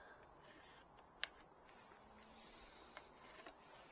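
A marker pen scratches across a hard surface.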